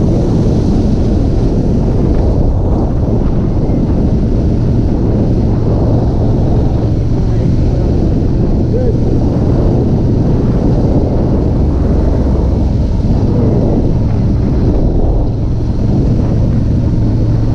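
A motorcycle engine rumbles steadily up close.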